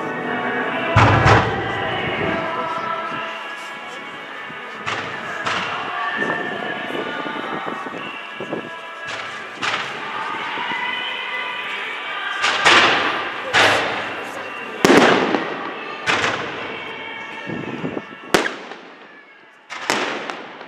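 Fireworks whistle and hiss as they shoot upward.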